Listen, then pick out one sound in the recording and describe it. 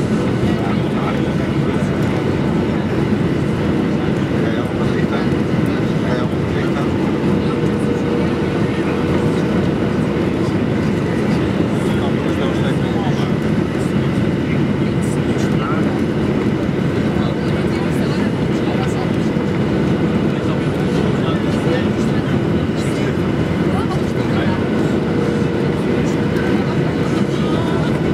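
Air rushes loudly past an aircraft's fuselage.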